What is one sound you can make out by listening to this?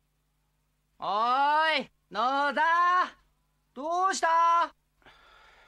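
A man calls out loudly from a distance.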